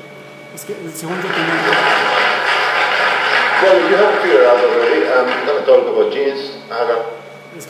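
Applause plays through a loudspeaker in a room.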